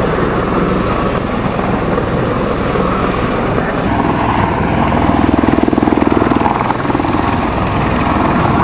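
A V-22 Osprey tiltrotor flies past with thudding rotors.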